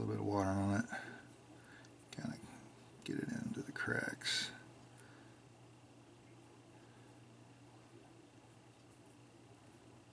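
A thin wooden stick scrapes and dabs softly on a small base.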